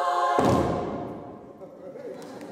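A choir sings a final chord that rings out and fades in a large echoing hall.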